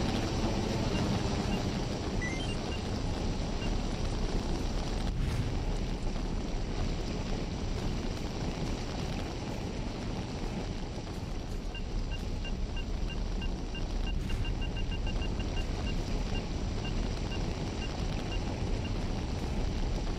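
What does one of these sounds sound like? A handheld detector beeps in short, quick pulses.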